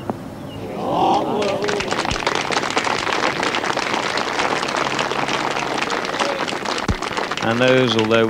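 A distant crowd applauds and cheers outdoors.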